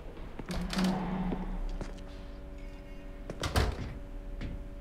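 A door opens with a thud.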